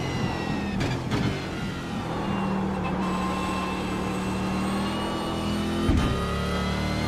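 A gearbox clunks sharply as gears shift.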